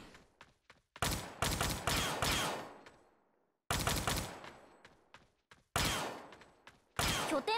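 Gunfire rings out in loud bursts that echo away.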